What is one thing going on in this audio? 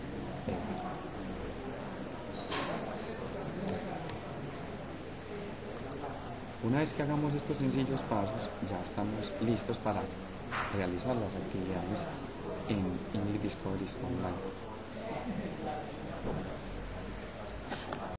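A young man speaks calmly and explains into a nearby microphone.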